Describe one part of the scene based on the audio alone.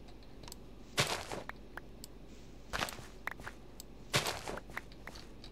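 Dirt blocks break with short crunching thuds.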